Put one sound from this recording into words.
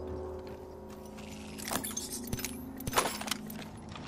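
A metal crate clanks open.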